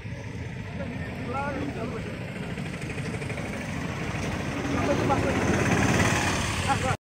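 A crowd of men chatters and murmurs outdoors.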